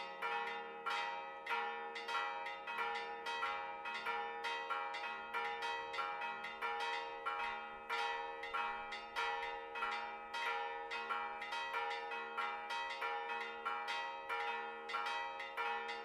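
Church bells ring in a rapid, steady peal, each stroke ringing on.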